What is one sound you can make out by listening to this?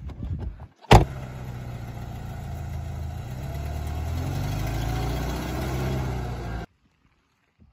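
A car engine starts and revs as the car pulls away.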